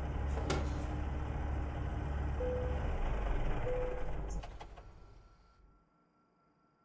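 A truck's diesel engine idles with a low rumble, then shuts off and winds down.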